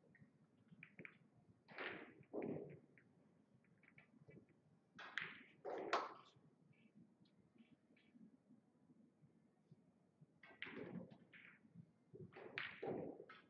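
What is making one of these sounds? A cue tip strikes a billiard ball.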